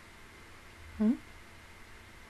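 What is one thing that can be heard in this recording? A young woman makes a brief hum close to a microphone.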